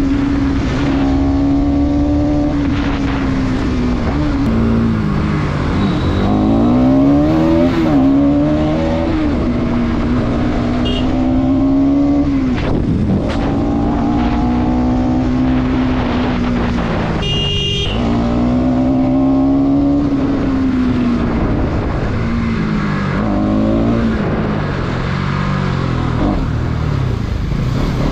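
A motorcycle engine revs up and down as the rider changes speed.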